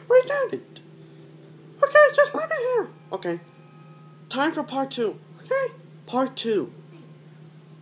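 A child speaks in a high, playful voice close by.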